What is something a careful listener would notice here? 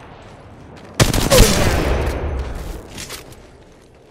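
Rapid gunfire from a video game rattles in loud bursts.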